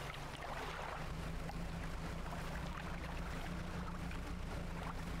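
A small boat engine chugs steadily.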